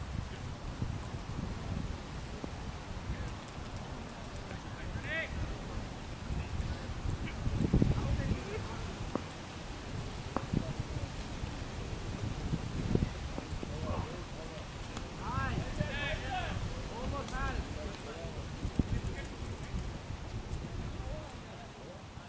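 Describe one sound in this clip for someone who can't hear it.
Wind rumbles across the open microphone outdoors.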